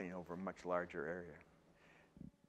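An elderly man speaks calmly to a room, heard through a microphone.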